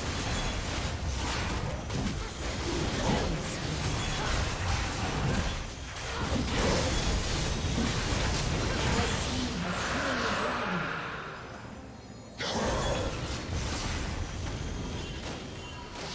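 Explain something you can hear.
Magic blasts and weapon hits crackle and clash in a busy fight.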